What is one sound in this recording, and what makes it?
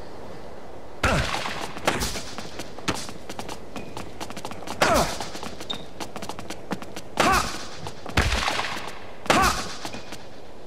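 A tennis ball is struck hard with a racket, again and again.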